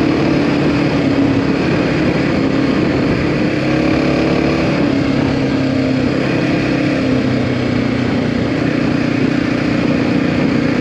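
Tyres crunch and rumble over a gravel road.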